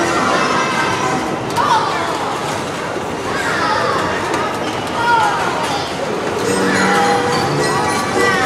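Children and adults chatter and call out nearby.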